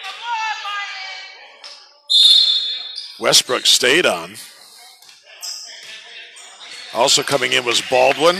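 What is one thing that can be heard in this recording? Spectators cheer and shout in a large echoing hall.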